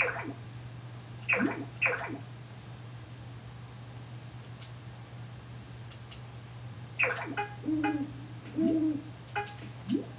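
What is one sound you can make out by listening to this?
Short electronic chimes sound as game menu options are selected.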